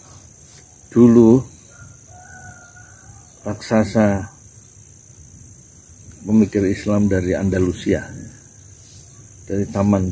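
An older man speaks calmly and closely, in short bursts with pauses.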